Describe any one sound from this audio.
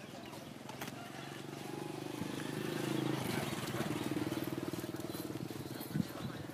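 A motorbike engine hums as it passes.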